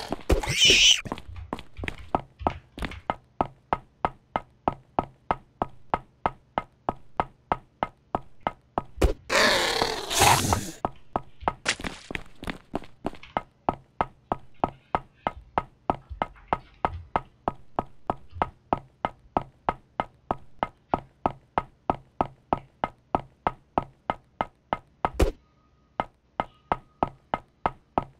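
Footsteps tread quickly and steadily on a hard floor.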